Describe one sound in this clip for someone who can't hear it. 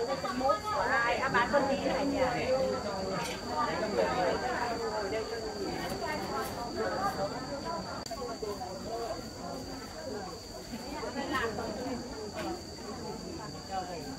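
An older woman talks casually close by.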